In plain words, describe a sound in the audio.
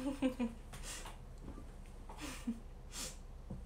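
A young woman speaks softly and cheerfully close to a microphone.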